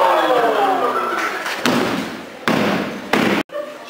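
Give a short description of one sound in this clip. A body thuds onto a wrestling mat.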